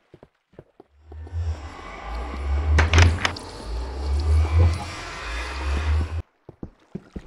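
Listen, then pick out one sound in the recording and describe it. A portal hums and whooshes with an eerie, wavering drone.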